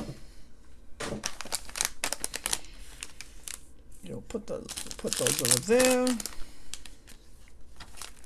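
Plastic bags of small pieces crinkle and rustle under a hand.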